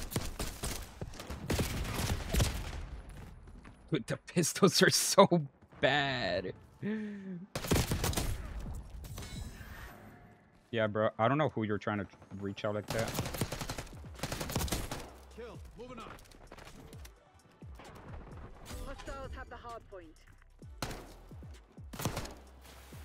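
Gunshots fire rapidly in bursts.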